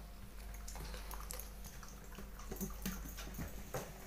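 A dog's claws tap on a wooden floor.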